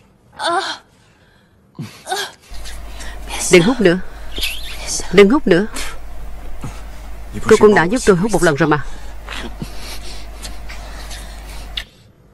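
A woman moans softly.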